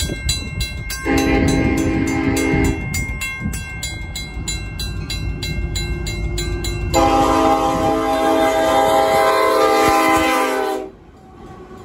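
A train horn blows loud, long blasts.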